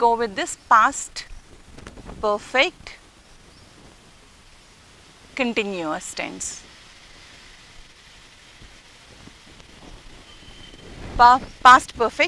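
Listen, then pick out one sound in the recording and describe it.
A woman speaks clearly and calmly in short phrases, close to a microphone.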